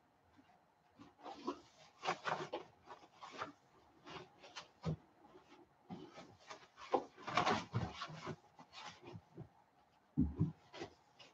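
A man crumples packing wrap.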